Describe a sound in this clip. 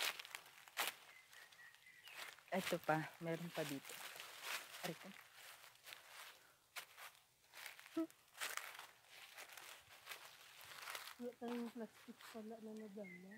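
Leaves rustle and wind brushes past outdoors.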